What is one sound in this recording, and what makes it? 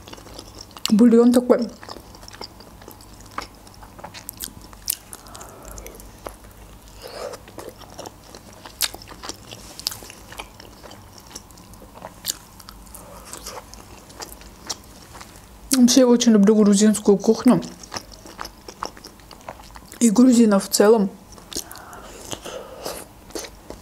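Wet chewing and smacking sounds come from close by.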